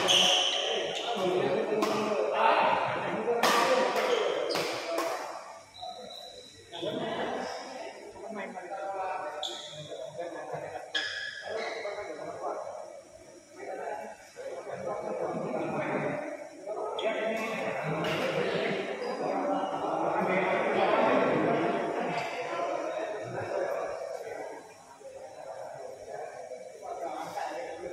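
Spectators talk nearby in a large echoing hall.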